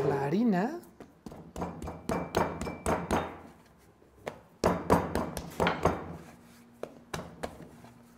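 Hands slap and pat dough on a wooden board.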